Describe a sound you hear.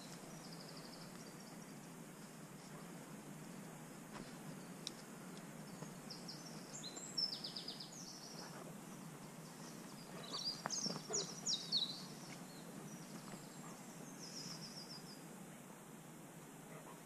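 Footsteps tread softly on a path.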